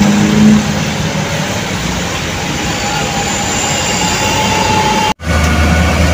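Vehicles drive past on a wet road.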